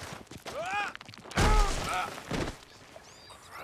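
A man tumbles and thuds heavily onto the ground.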